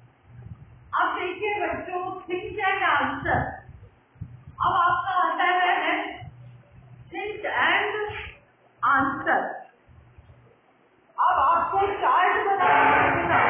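An elderly woman speaks clearly and steadily, close by.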